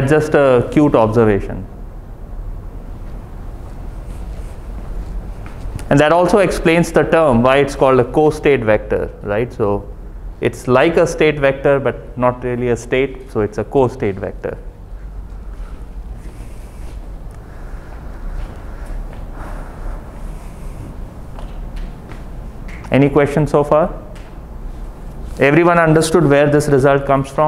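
A man lectures calmly, heard through a microphone.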